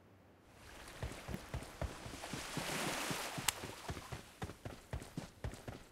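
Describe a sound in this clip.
Footsteps tap quickly on rocky ground.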